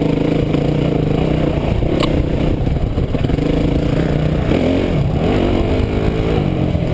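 A dirt bike engine revs and buzzes loudly up close, rising and falling in pitch.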